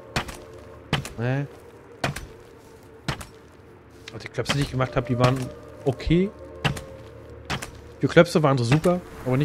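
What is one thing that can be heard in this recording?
Footsteps thud on stone at a steady walking pace.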